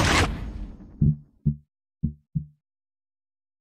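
Short low menu blips sound as a selection moves from item to item.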